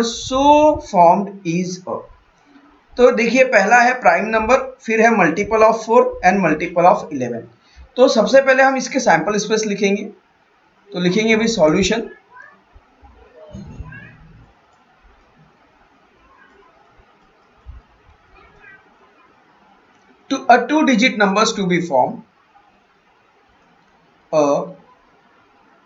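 A man speaks with animation close to a microphone, explaining in pauses.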